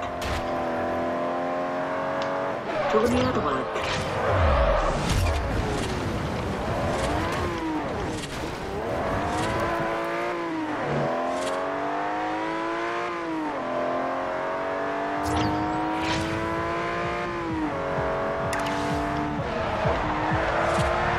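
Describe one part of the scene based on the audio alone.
A race car engine roars loudly and revs up and down as it shifts gears.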